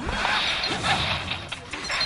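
Game fight effects whoosh and clash.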